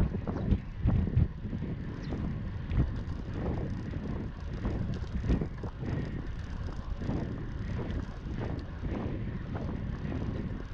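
Bicycle tyres roll over a rough paved path.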